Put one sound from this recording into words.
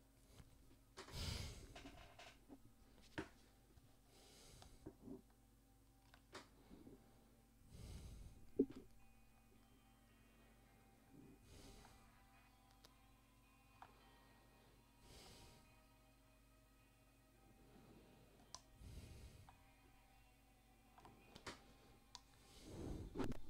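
A young man breathes heavily close to a microphone.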